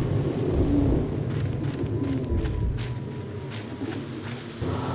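Footsteps crunch on a forest path.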